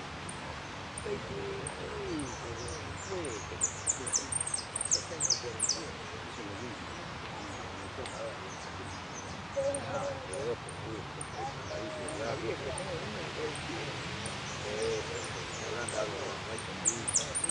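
A canary sings in high, fast trills and chirps.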